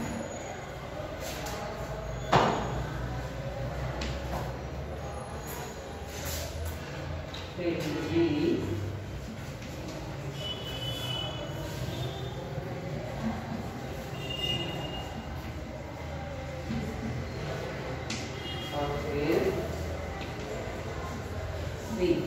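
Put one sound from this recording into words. Chalk taps and scrapes across a board.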